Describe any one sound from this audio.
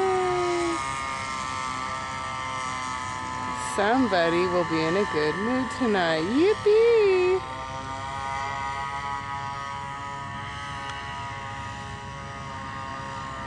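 A paramotor engine drones steadily overhead.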